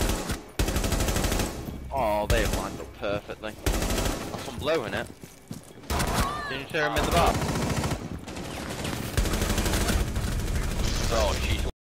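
Rifles fire in rapid bursts, with loud cracking shots.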